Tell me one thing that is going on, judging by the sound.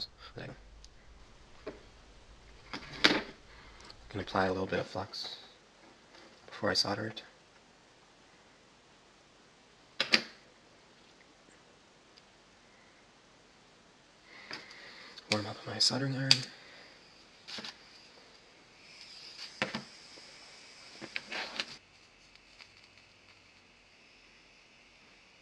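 Hands handle and bend stiff wire with light rustling.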